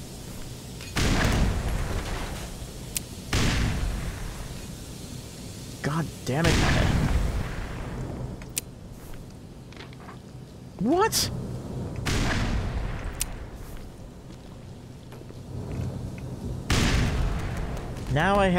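Grenades explode with deep booming blasts that echo in a tunnel.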